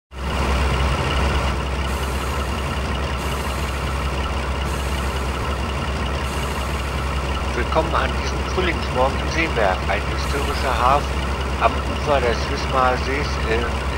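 A diesel locomotive engine idles with a steady low rumble.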